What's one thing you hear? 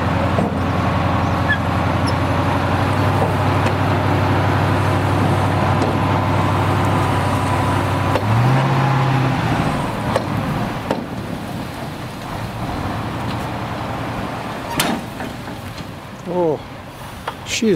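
Sand and dirt pour and rush out of a tipping dump truck bed.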